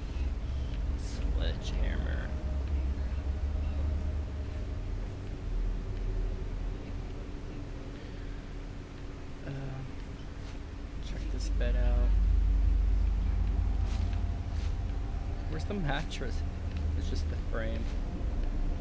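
A man talks calmly into a close microphone, now and then.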